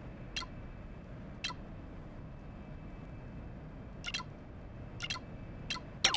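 Short descending menu blips sound as a cursor moves across a video game map.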